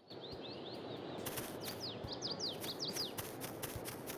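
Quick footsteps patter across grass.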